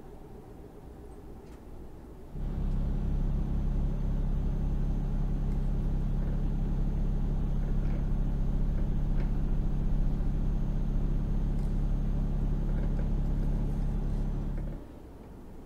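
A truck engine hums steadily from inside the cab.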